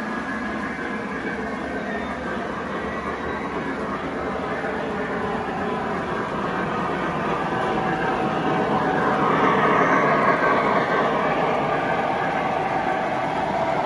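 A toy carousel plays a tinkling tune.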